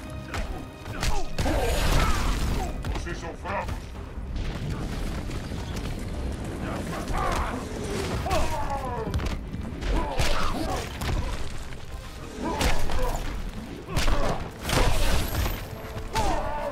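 Heavy blows thud and smack in quick bursts.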